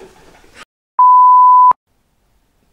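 A steady test tone beeps.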